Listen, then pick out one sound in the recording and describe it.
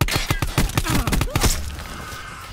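Rapid gunfire bursts out loudly at close range.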